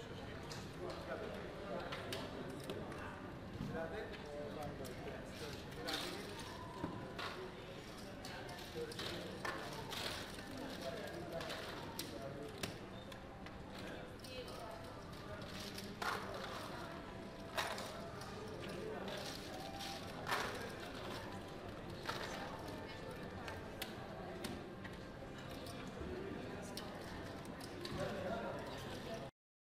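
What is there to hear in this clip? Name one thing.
Casino chips clack and click as they are stacked and pushed across a table.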